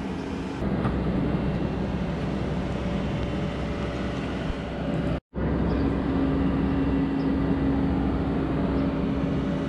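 An excavator bucket scrapes and grinds against concrete and gravel.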